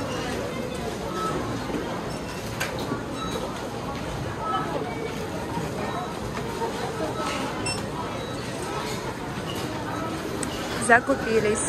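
Shopping cart wheels rattle across a hard floor.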